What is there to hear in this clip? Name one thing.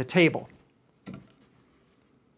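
A wooden disc knocks down onto a tabletop.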